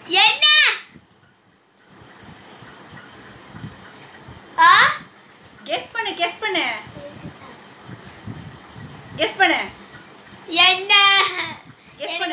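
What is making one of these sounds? A young boy speaks and laughs close by.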